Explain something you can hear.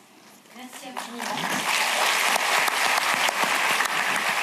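An elderly man claps his hands.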